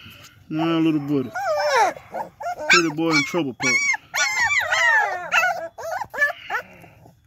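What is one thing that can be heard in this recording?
Puppies whine and yelp in high, wavering cries close by.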